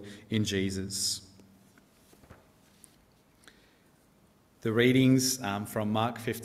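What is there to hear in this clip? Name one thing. A young man speaks calmly through a microphone, pausing between phrases.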